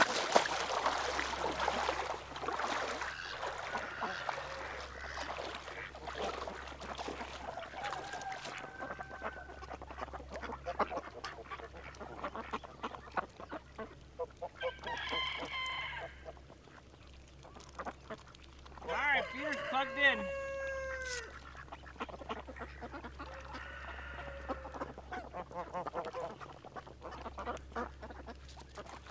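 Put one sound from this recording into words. Water splashes as a person wades through a shallow pond.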